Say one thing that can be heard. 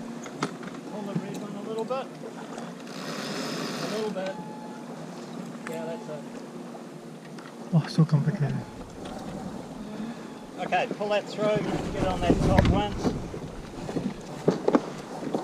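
A man talks calmly nearby, outdoors.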